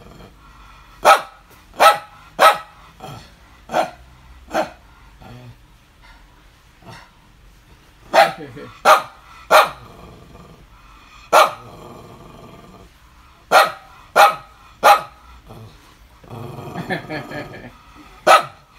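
A small dog barks sharply in short bursts close by.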